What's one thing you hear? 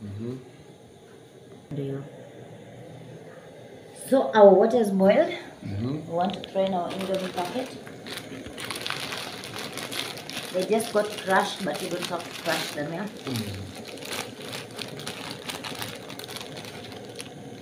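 A plastic packet crinkles and rustles.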